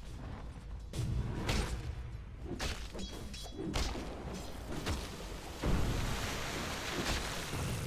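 Game combat effects crackle and thud in quick bursts.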